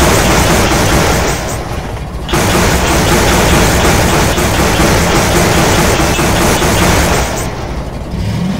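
A passing train rumbles loudly close by.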